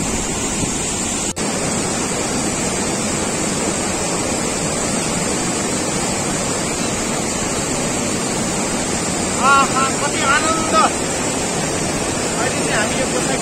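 A mountain river rushes loudly over rocks.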